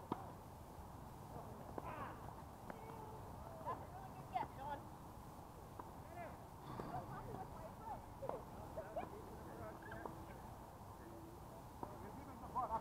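Tennis balls are struck with rackets, giving faint pops in the distance.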